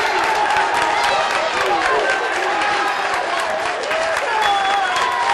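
A football crowd cheers outdoors.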